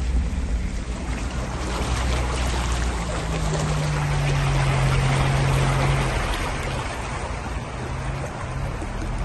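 Water splashes and sloshes loudly against the side of a car.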